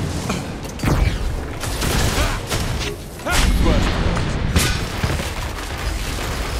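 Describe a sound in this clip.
Gunshots and blasts crack in a video game.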